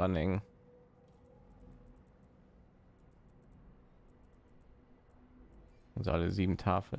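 Soft interface ticks sound as a game menu is browsed.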